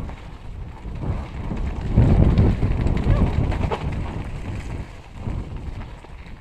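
Wind buffets loudly past a fast-moving rider.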